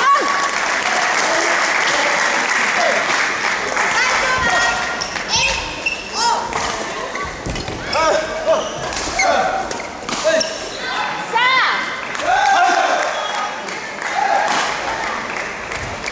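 Shoes squeak sharply on a hard court floor in a large echoing hall.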